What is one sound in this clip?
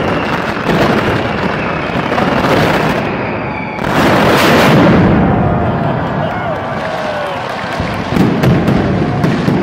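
Firecrackers burst in a rapid, deafening barrage outdoors.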